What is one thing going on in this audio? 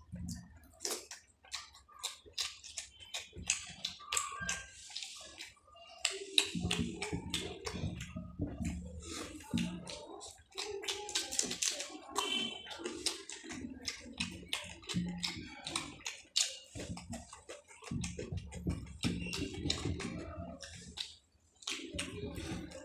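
A man chews and slurps food loudly, close up.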